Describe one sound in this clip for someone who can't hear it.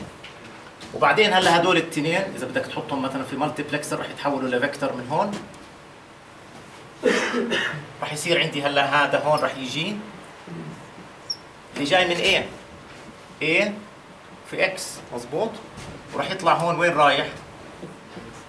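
A middle-aged man speaks calmly, explaining.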